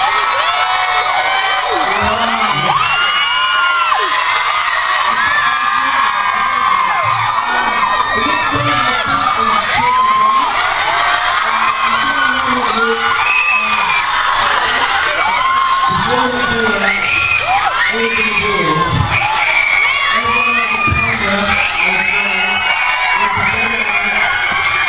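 A crowd of young fans screams and cheers loudly throughout.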